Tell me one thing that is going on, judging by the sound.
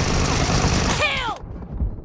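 A rifle fires short bursts of shots.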